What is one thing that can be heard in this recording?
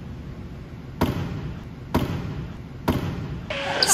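A basketball thuds repeatedly in a large echoing hall.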